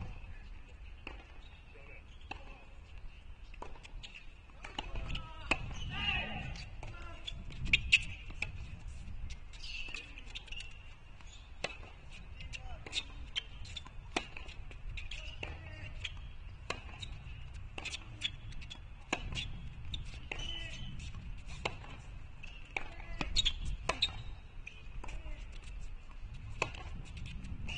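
Tennis balls are struck sharply with rackets in a rally, outdoors.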